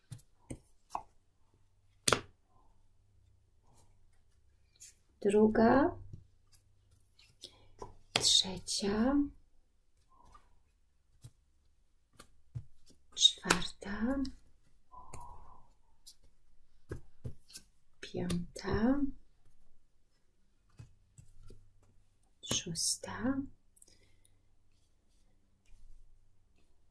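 Cards slide and tap softly onto a cloth-covered table.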